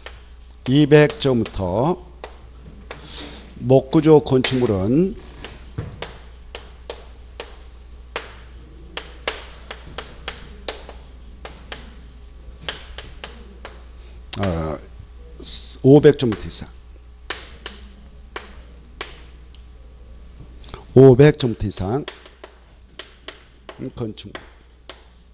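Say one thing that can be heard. A man speaks into a microphone in short bursts, calmly explaining.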